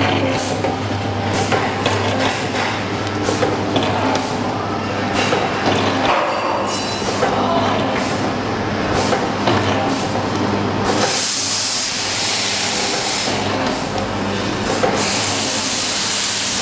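A packaging machine hums steadily.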